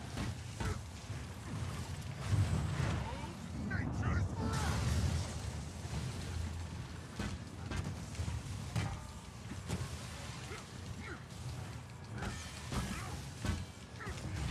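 Lightning crackles and zaps in sharp bursts.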